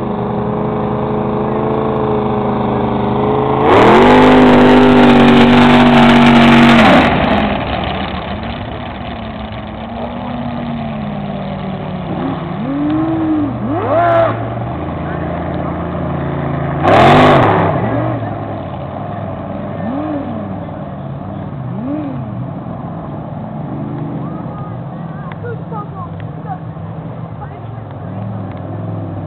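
Powerboat engines drone across the water, rising and falling in pitch as the boats race by.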